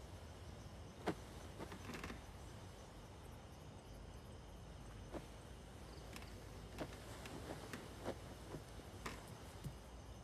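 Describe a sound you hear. Bedding rustles and creaks as a person shifts and gets up.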